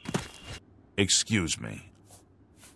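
A man says a short greeting.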